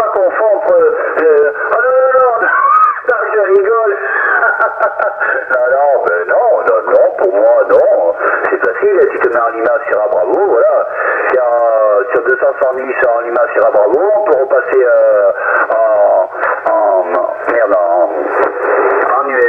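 A radio receiver plays a crackly, muffled transmission through its loudspeaker.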